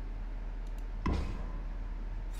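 A playing card slaps down onto a wooden table.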